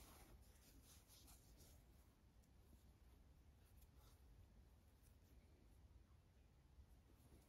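Yarn rustles softly as a needle pulls it through knitted fabric.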